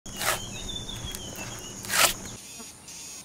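An axe chops into a log.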